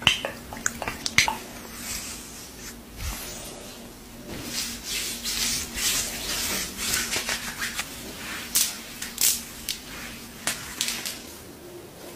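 Hands rub lotion with soft, sticky swishing.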